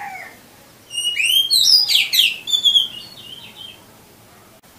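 A caged songbird sings bright, rapid whistling phrases.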